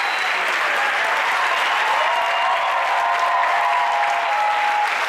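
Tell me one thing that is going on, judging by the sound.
A crowd of people cheers and claps loudly.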